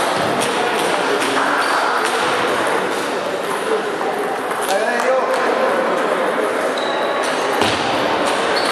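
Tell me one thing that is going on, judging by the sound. A ping-pong ball clicks back and forth between paddles and table.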